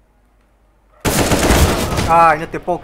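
A young man shouts loudly into a close microphone.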